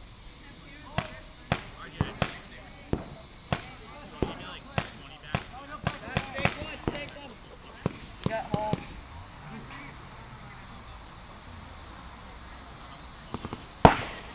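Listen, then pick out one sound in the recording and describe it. A paintball gun fires sharp popping shots outdoors, in bursts.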